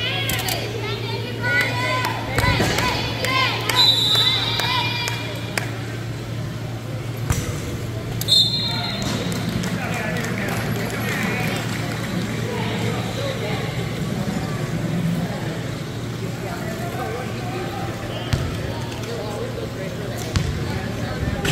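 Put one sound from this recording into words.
Young men call out and chatter in a large echoing hall.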